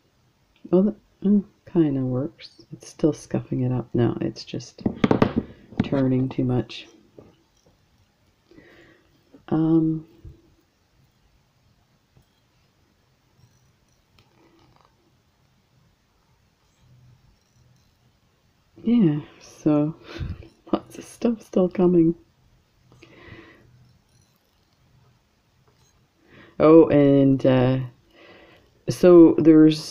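Pliers click and scrape softly against wire.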